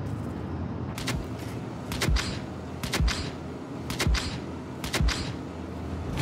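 A sharp electronic beep sounds once a second as a countdown.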